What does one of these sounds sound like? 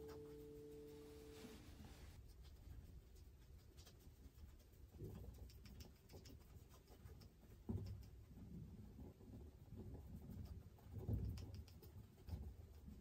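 A paintbrush dabs and brushes softly against a canvas.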